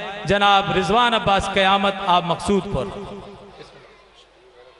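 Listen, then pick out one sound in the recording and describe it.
A young man recites melodically into a microphone, heard through loudspeakers.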